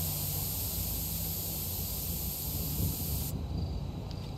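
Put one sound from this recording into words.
A spray can hisses steadily.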